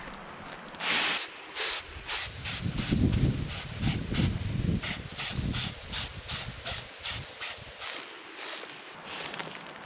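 Nylon fabric rustles and flaps as a sleeping pad is unrolled.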